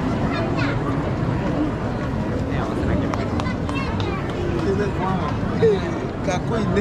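A crowd of people chatters all around in a busy street.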